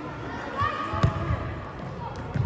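A ball is kicked with a thud.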